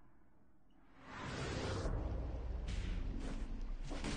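A teleporter hums and whooshes.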